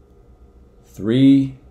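A man speaks a short word up close to the microphone.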